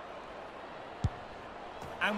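A ball is kicked with a sharp thud.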